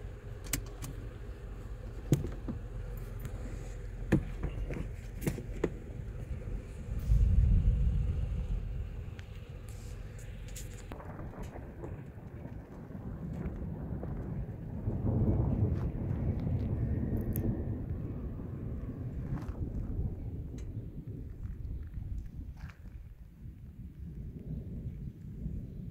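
Wind blows in gusts outdoors.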